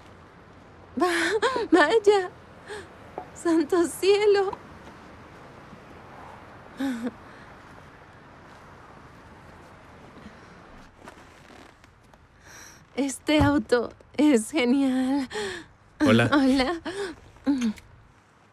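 A young woman talks cheerfully nearby.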